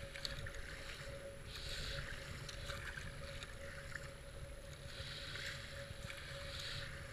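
A paddle splashes rhythmically in the water.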